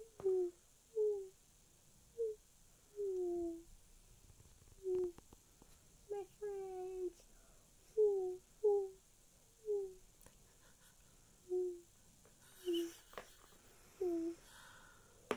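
An owl hoots again and again.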